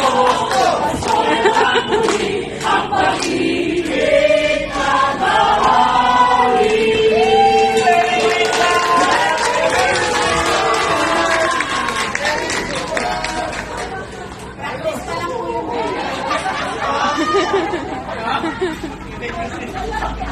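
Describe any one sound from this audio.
A crowd cheers and chatters in a busy hall.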